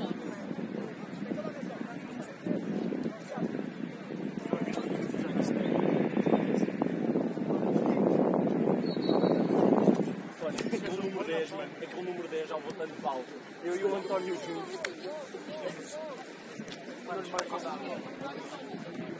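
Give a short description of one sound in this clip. Young men talk and call out nearby, outdoors on an open pitch.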